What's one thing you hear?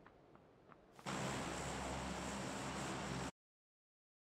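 A large propeller plane's engines drone steadily.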